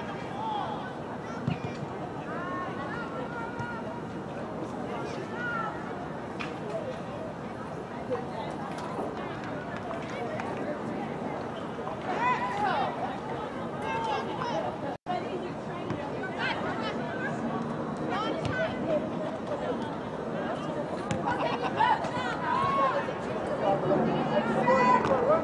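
Young women shout and call out across an open outdoor field.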